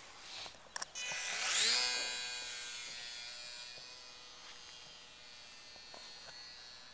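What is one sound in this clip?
A small model plane's electric motor whines, rising sharply in pitch and then slowly fading as the plane flies away.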